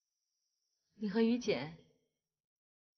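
A young woman speaks briefly, close by.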